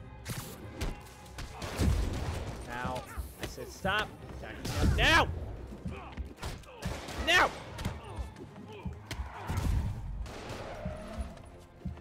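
Punches and heavy thuds land in a brawl.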